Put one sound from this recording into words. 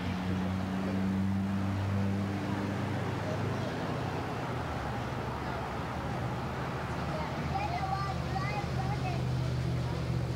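Young children chatter.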